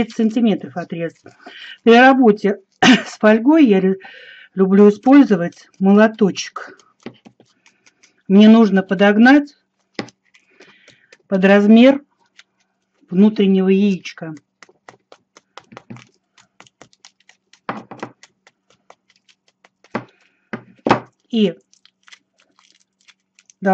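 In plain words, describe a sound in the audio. Aluminium foil crinkles and rustles between fingers.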